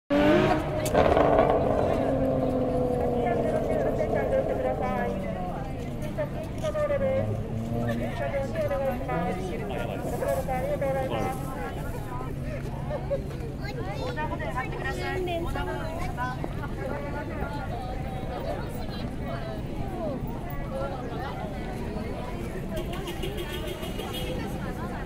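Many people chatter nearby outdoors.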